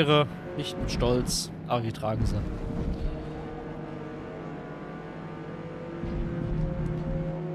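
A racing car engine roars and revs through gear changes.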